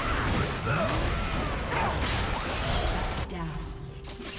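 Video game combat effects whoosh, zap and clash rapidly.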